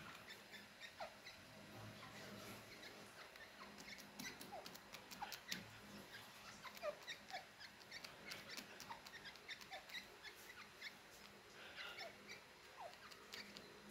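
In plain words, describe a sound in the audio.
Small birds give soft, short chirps now and then.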